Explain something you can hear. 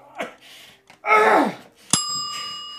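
A man cries out loudly nearby.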